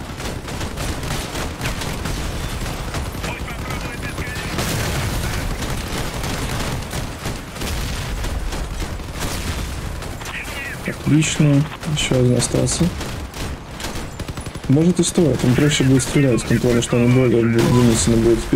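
Gunfire and explosions rattle and boom.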